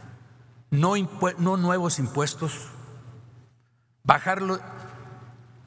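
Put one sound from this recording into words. An older man speaks forcefully into a microphone in a large, echoing hall.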